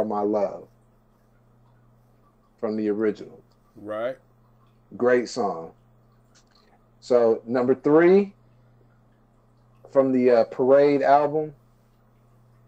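A man speaks calmly into a microphone in short bursts with pauses.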